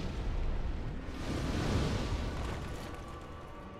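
A large fiery blast bursts with a loud whoosh.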